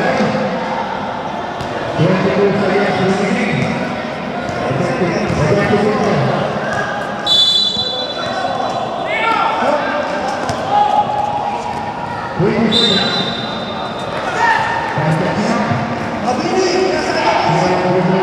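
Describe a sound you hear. A crowd of men and women chatter and shout in a large echoing hall.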